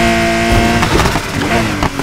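A car exhaust pops and crackles.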